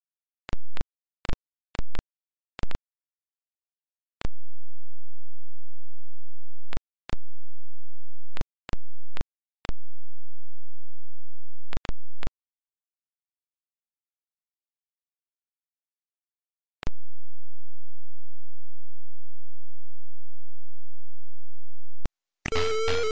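Low electronic buzzing tones from a retro boxing game hum on and off.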